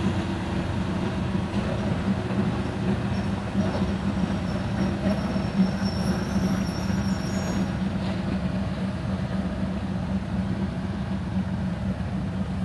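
A diesel train engine rumbles steadily as a train pulls slowly in.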